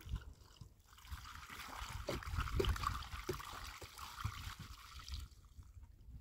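Water pours from a plastic jug into a metal basin.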